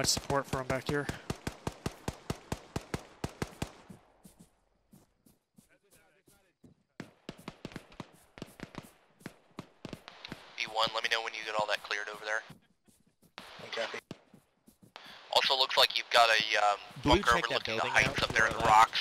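Rifles fire in quick, regular bursts, then in scattered shots.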